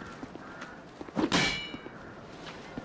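Wooden planks clatter across stone.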